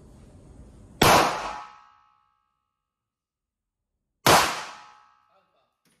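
A pistol fires two loud shots that ring in an echoing room.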